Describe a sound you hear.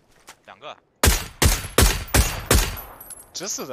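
A sniper rifle fires several shots.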